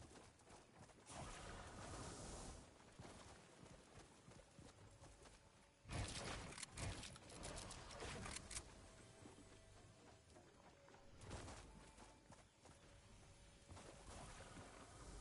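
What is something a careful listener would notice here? Water splashes and sloshes as someone wades and swims through it.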